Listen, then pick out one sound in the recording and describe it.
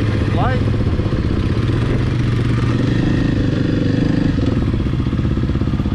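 A quad bike engine hums nearby and fades into the distance.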